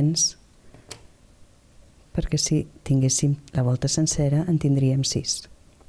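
Plastic pieces tap and slide on a table.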